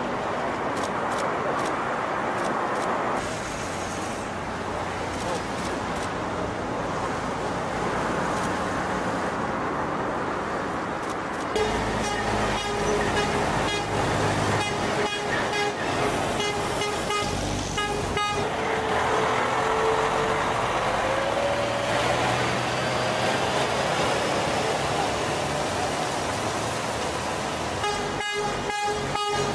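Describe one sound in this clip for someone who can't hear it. Heavy truck engines rumble as they drive slowly past.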